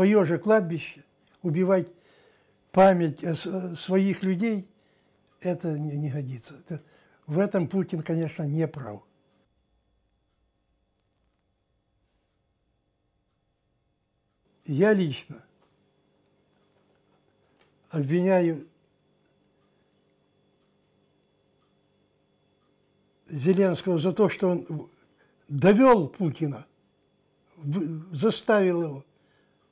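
An elderly man speaks calmly and close to a microphone, in short bursts with pauses.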